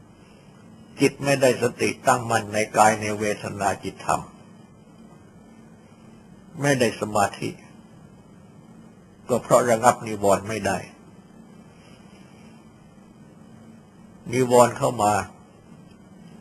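An elderly man speaks calmly in short phrases with pauses between them.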